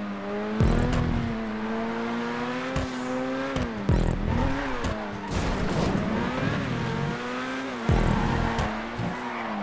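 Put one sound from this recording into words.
Exhaust pops and crackles from a race car.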